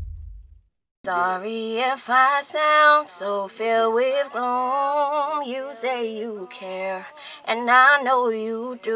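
A young woman sings closely into a microphone.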